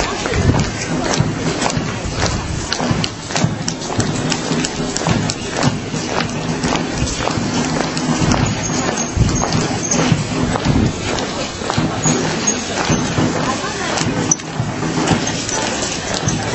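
Many footsteps march in step on pavement outdoors.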